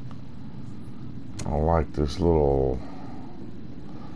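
A lighter flicks and sparks.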